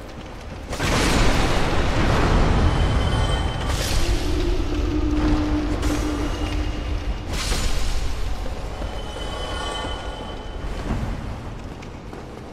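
A magical blast roars and crackles.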